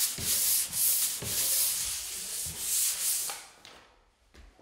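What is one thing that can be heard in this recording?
A pole sander rasps across drywall.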